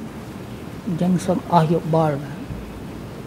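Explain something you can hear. An elderly man speaks briefly and quietly into a microphone.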